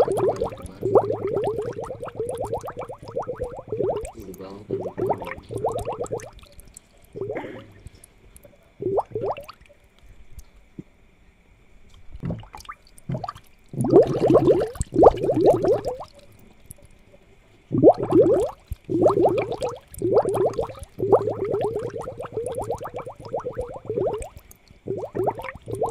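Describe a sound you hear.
Water bubbles from an aquarium air pump.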